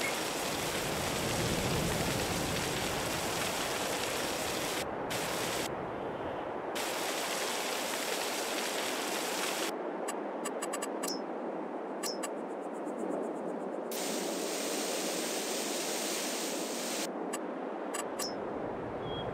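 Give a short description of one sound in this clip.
A man talks steadily into a close microphone.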